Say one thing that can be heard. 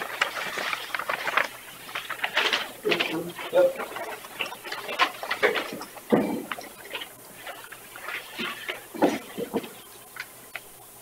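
Men talk in a room.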